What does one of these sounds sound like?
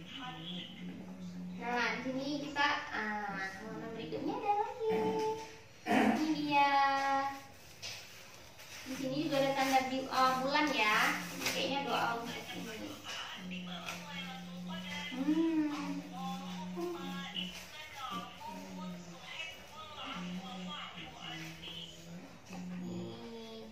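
A young woman talks animatedly and gently to a small child close by.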